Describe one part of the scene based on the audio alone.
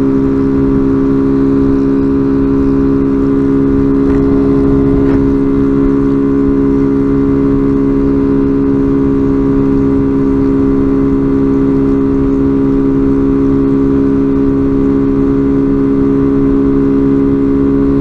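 A motorcycle engine hums steadily close by while riding.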